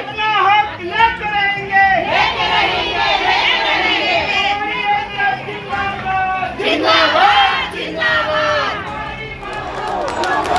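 A large crowd of men and women chants slogans loudly outdoors.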